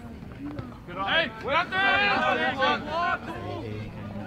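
Men shout and cheer loudly outdoors.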